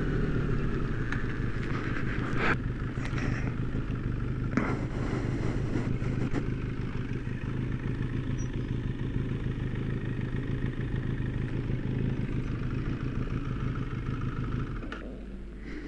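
A motorcycle engine idles with a steady low rumble, then cuts out.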